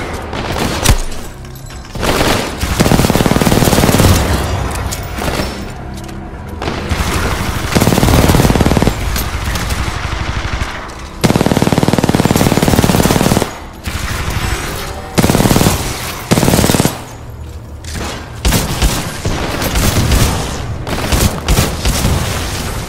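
Energy weapons zap and whine.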